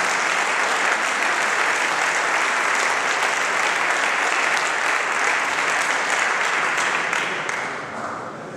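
An audience applauds in a large hall, fading toward the end.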